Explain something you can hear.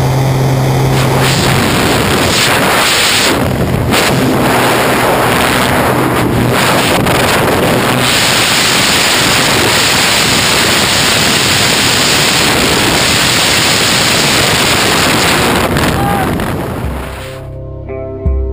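Strong wind roars loudly.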